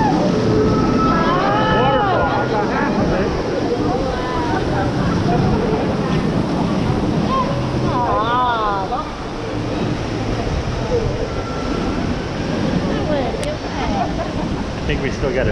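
Young people shout and squeal with excitement nearby.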